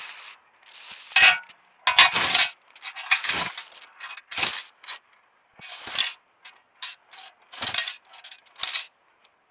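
A hoe scrapes and chops through weeds in soil.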